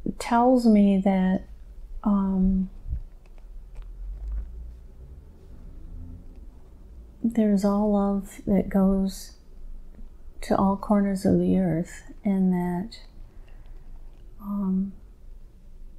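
A woman speaks slowly and drowsily into a clip-on microphone, close by.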